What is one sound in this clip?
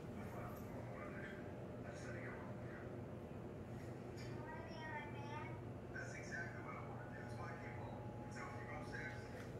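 A television plays voices in the background.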